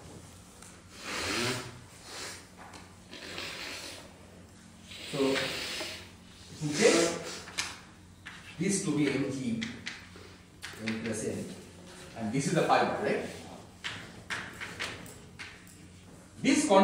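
A man lectures with animation in an echoing room.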